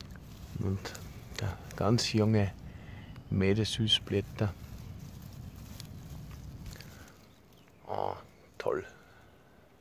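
Leaves rustle softly as a hand brushes through them.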